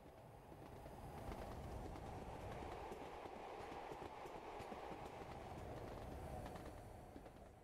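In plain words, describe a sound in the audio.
Train wheels clatter over rail joints as the train passes.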